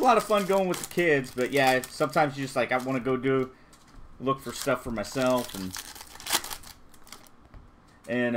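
A foil wrapper crinkles and tears as hands rip open a pack.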